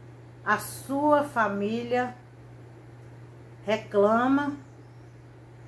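A middle-aged woman speaks calmly and close by, in short phrases.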